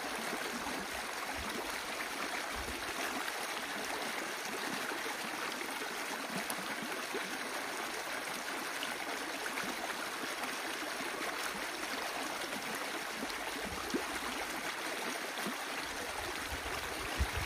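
Water rushes and gurgles steadily through a gap in a small dam of sticks.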